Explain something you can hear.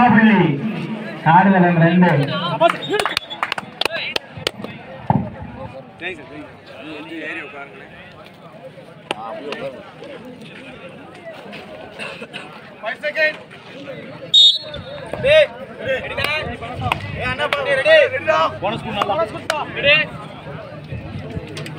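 A crowd of people cheers and chatters.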